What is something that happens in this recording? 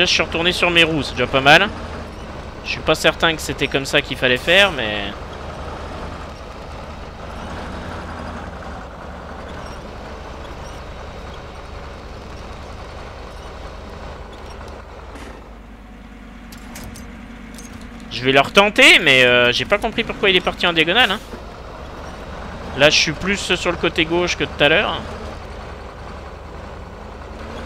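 An off-road truck's engine rumbles low and steadily.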